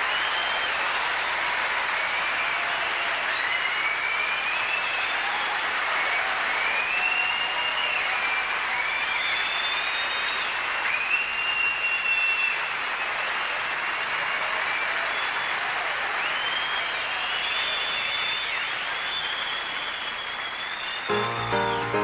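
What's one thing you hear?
Members of an audience whistle and cheer.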